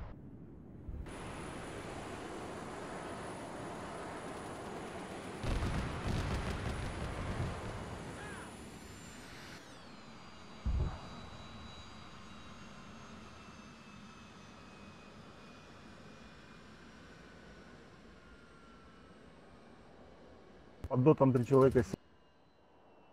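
A jet engine roars steadily and whines as it passes.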